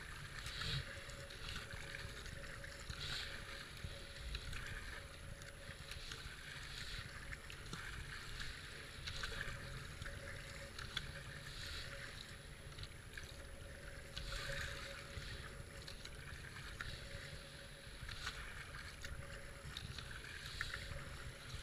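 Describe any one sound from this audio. Paddle blades splash rhythmically into the water.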